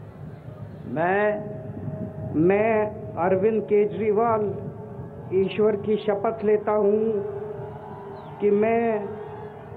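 An elderly man reads out slowly through a loudspeaker, with echo outdoors.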